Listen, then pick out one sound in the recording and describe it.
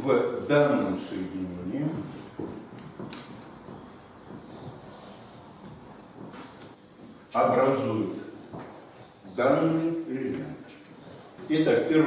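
An elderly man speaks calmly in a room with a slight echo.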